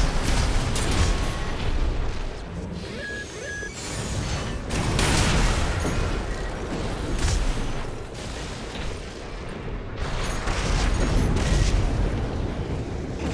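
Explosions boom and rumble repeatedly.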